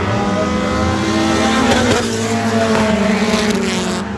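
A race car roars past close by.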